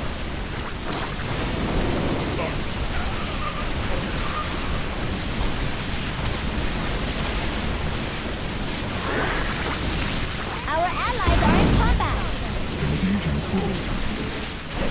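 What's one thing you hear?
Guns fire rapidly in a noisy battle.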